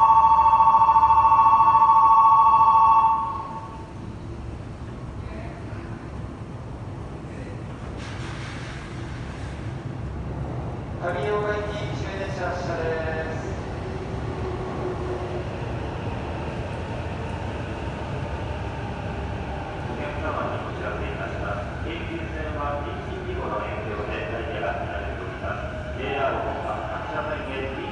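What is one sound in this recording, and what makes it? A train hums low while standing at a platform.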